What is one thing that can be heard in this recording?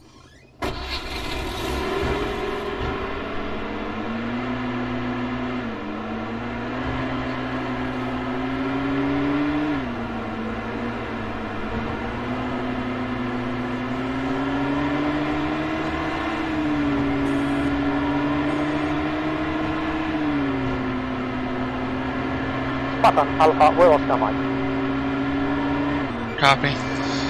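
A vehicle engine hums steadily, rising and falling in pitch as it changes gear.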